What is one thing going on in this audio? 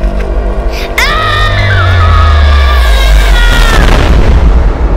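A young boy screams in pain.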